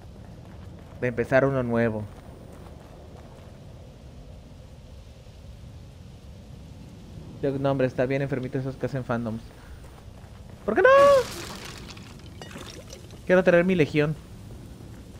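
A young man talks through a headset microphone in short, animated bursts.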